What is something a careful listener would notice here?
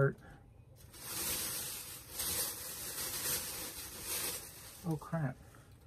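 Fabric rustles and shuffles as clothes are handled.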